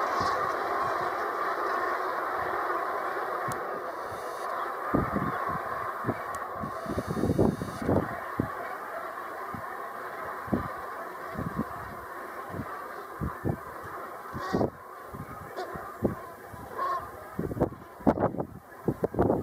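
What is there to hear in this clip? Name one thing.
Wind blows across open water.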